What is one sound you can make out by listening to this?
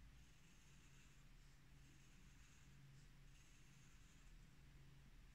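A small blade scrapes faintly in short strokes.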